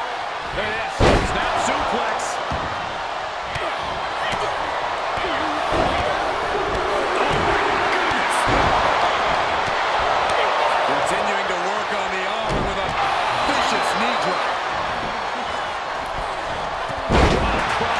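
Heavy bodies slam onto a wrestling mat with loud thuds.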